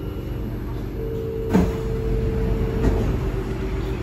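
Metro train doors slide open with a thump.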